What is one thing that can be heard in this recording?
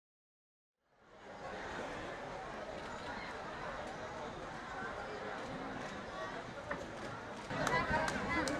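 A crowd of men chatter and murmur nearby, outdoors.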